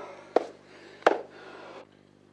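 A body thuds onto the ground.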